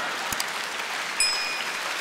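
A woman in the audience laughs loudly.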